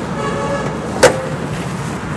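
A car hood pops open with a click.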